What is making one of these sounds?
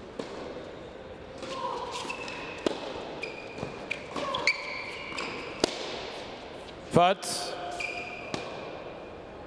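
A tennis ball is struck sharply by a racket, back and forth.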